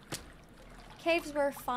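A young woman speaks briefly and calmly into a close microphone.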